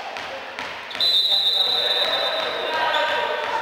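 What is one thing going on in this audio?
A referee's whistle blows shrilly.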